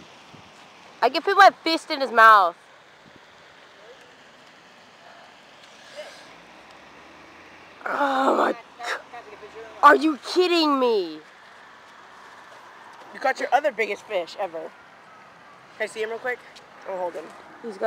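A teenage boy speaks excitedly up close.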